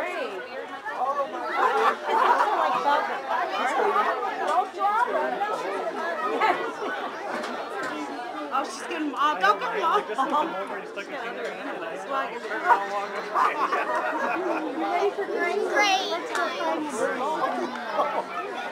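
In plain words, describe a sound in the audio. Young children chatter and squeal excitedly close by.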